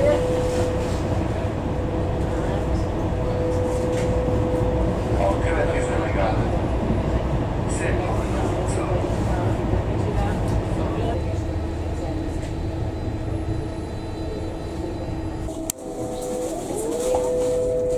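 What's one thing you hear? A train rumbles and whines steadily as it travels.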